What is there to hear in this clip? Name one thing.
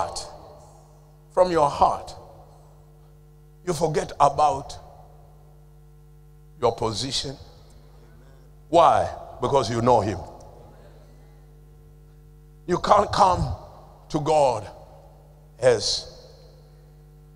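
A man preaches with animation through a microphone, in short bursts with pauses, in a large echoing hall.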